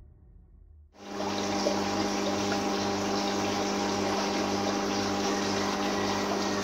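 Air bubbles stream and gurgle steadily in water.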